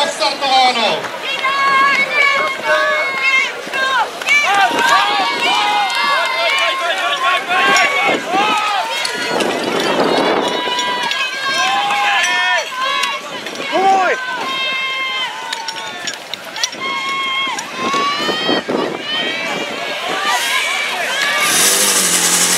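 A crowd of men and women shout and cheer excitedly nearby, outdoors.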